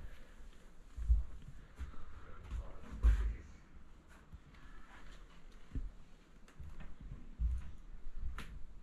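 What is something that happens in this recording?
Footsteps thud on a carpeted floor.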